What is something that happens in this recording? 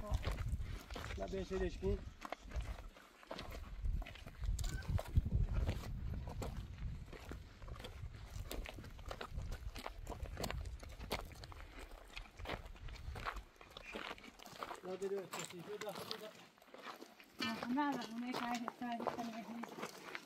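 Footsteps crunch on dry gravelly ground.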